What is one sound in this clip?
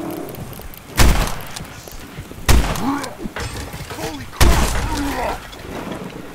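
A gun fires single loud shots with a short ringing tail.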